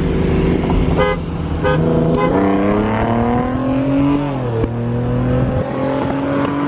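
A car engine revs loudly and rises in pitch as it passes close by.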